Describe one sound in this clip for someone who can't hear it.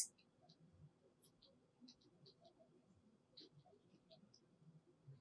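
A woman speaks calmly and steadily into a microphone, as if giving a lecture.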